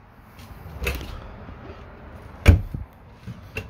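A cabinet door latch clicks as a door is pulled open.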